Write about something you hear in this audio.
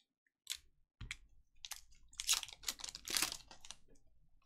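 A foil pack tears open.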